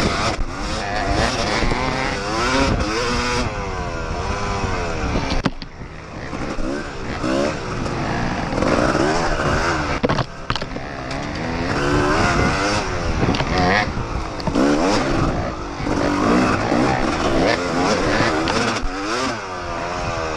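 A dirt bike engine revs up and down loudly close by.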